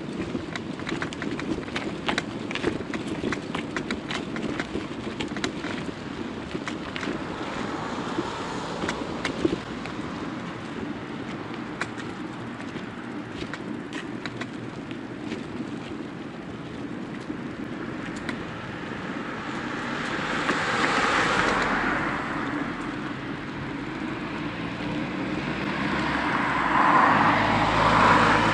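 Bicycle tyres roll over rough, cracked pavement with frequent rattles and bumps.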